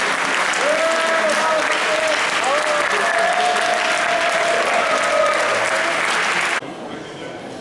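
A crowd applauds and cheers in a large echoing hall.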